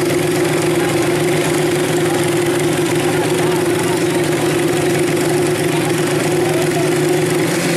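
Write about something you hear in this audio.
A motorcycle engine idles loudly with a steady, buzzing drone.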